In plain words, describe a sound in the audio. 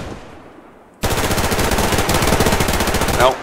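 A rifle fires in a rapid, loud burst.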